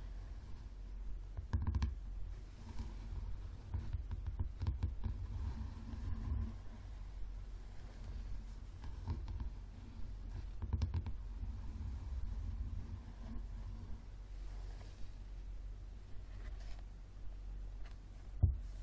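Fingernails tap and scratch softly on a book's cover, close up.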